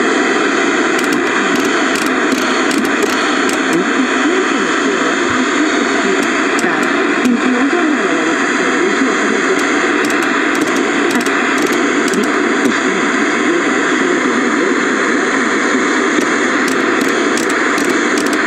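A television channel dial clicks as it is turned.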